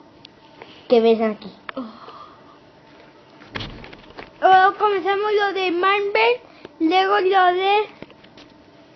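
A young child speaks excitedly close by.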